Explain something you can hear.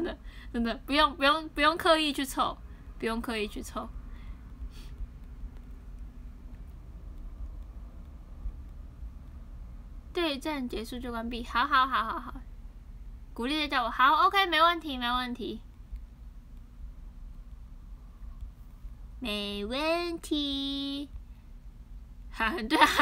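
A young woman talks animatedly and close by, as if into a phone microphone.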